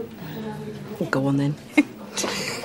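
A second middle-aged woman answers in a low, calm voice, close by.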